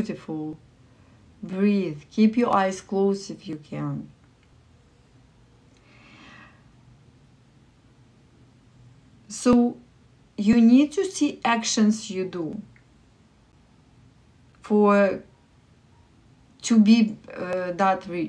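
A young woman talks expressively and close up, with pauses between phrases.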